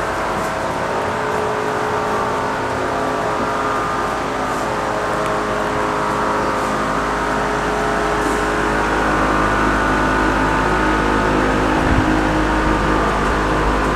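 Many computer fans whir steadily with a loud, even hum.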